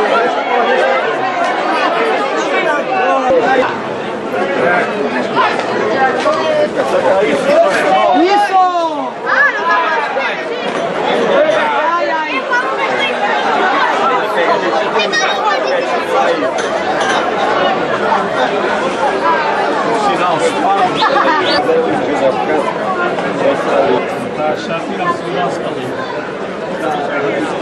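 A large outdoor crowd chatters, shouts and whistles.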